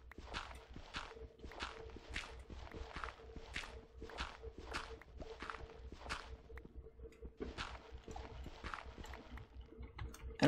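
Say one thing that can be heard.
Footsteps crunch steadily on gravelly ground.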